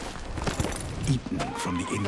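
A horse's hooves thud slowly on sand.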